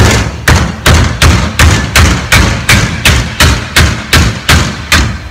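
A hammer strikes metal in a fast, steady rhythm, each blow ringing briefly.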